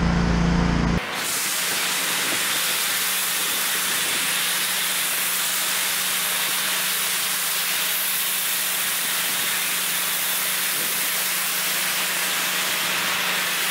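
A pressure washer sprays with a loud, steady hiss.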